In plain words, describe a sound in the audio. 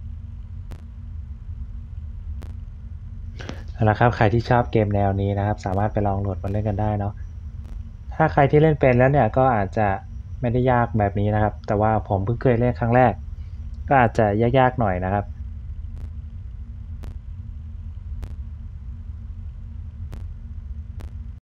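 A desk fan hums steadily.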